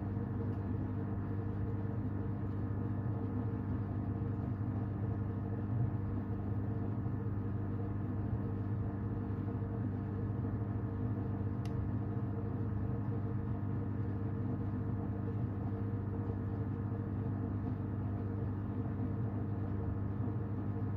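A washing machine hums steadily.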